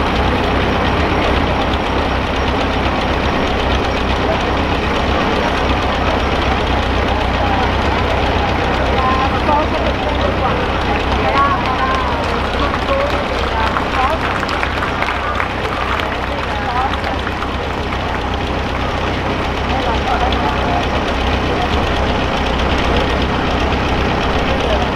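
A tractor engine idles with a low steady rumble.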